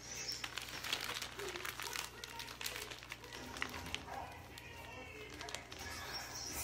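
A plastic piping bag crinkles as it is squeezed.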